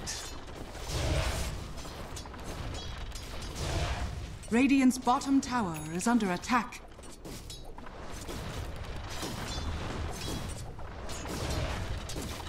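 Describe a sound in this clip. Game combat effects crackle and clash with bursts of magic.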